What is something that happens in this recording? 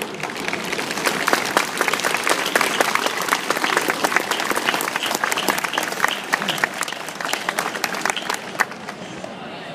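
A crowd applauds outdoors.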